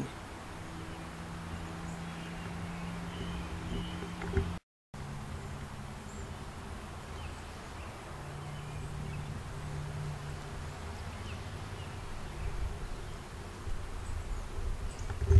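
Wind rustles leaves outdoors.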